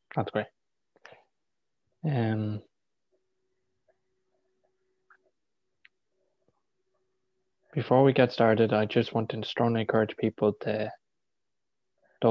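A young man speaks calmly over an online call, with pauses.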